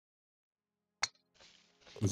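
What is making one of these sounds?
A golf ball is tapped with a putter, making a light click.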